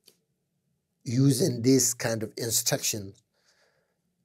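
A middle-aged man speaks calmly and warmly into a close microphone.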